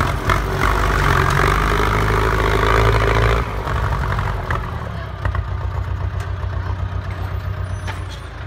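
Plough discs scrape and crunch through dry dirt.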